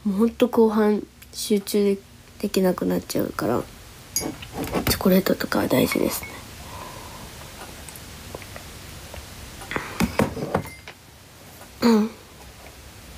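A young woman talks softly and playfully, close to a microphone.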